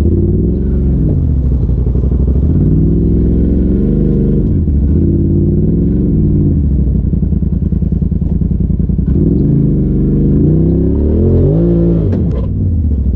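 An off-road vehicle's engine revs up and down loudly, close by.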